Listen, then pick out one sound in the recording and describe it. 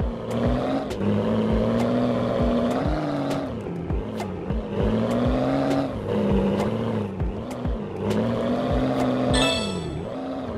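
Heavy tyres thump over bumps and logs.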